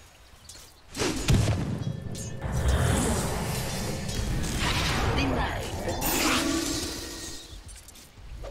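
Magical blasts and clashing weapons ring out in a noisy battle.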